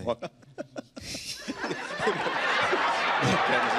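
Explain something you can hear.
Men laugh loudly into microphones.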